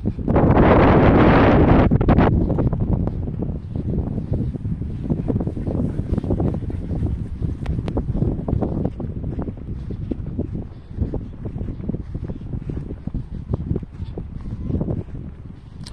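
Wind buffets the microphone outdoors, strongest at the start.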